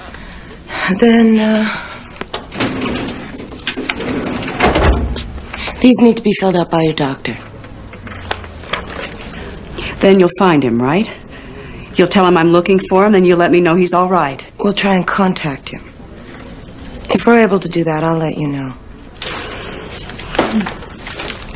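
A woman speaks calmly and firmly, close by.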